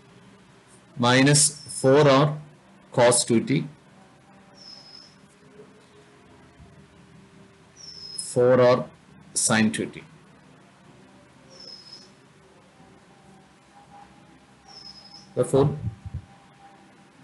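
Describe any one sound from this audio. A man speaks calmly in short phrases through a microphone, with long pauses.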